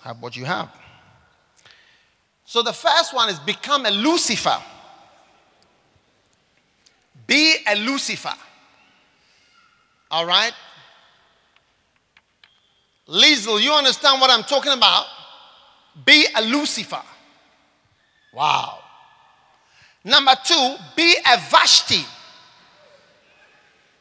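A man speaks with emphasis through a microphone, in bursts with pauses, in a reverberant hall.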